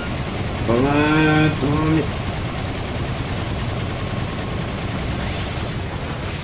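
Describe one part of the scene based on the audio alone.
Bright electronic game chimes ring out in quick bursts.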